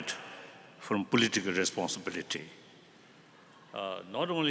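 An elderly man speaks slowly through a microphone.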